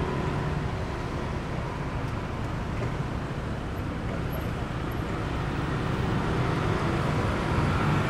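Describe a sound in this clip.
Car engines and tyres hum as traffic passes on a city street.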